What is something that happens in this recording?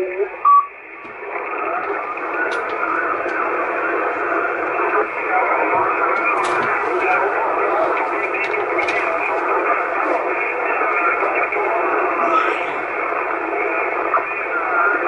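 A radio receiver hisses with loud static.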